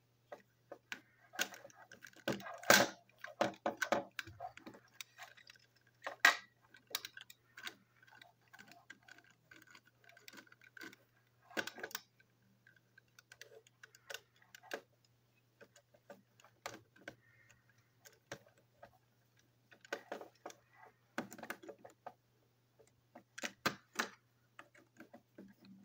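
A screwdriver clicks and scrapes in the screws of a plastic toy engine.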